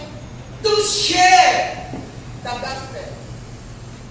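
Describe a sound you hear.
A woman speaks with animation into a microphone, heard through loudspeakers in an echoing hall.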